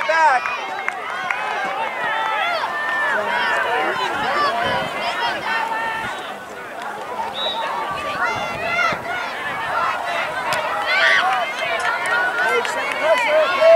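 Many children shout and call out across an open field.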